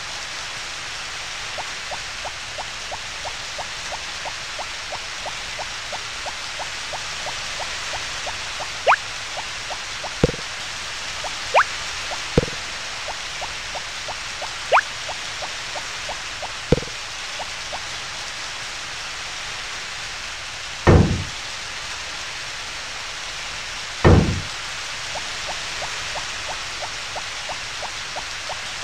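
Rain falls steadily with a soft hiss.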